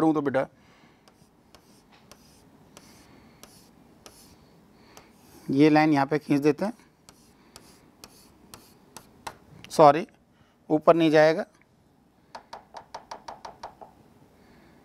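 A pen taps and scratches on a writing tablet.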